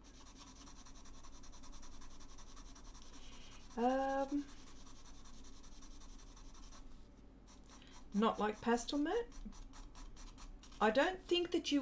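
A pastel pencil scratches softly on paper.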